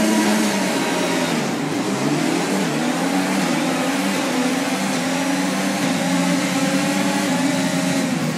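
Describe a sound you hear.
Racing car engines roar and rise in pitch as the cars accelerate away.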